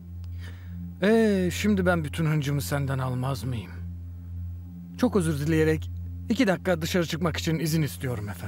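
A man speaks angrily and firmly nearby.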